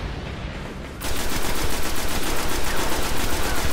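A rifle fires rapidly in a steady stream of shots.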